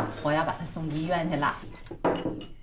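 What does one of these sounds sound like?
A middle-aged woman speaks calmly nearby.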